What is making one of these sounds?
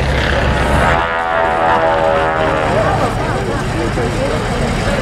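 A radial-engine propeller plane drones as it flies overhead.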